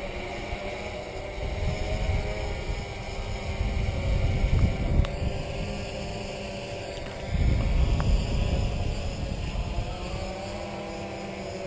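A drone's propellers buzz steadily overhead.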